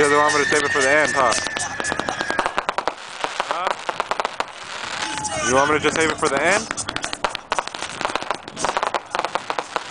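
Fireworks crackle and pop in rapid bursts.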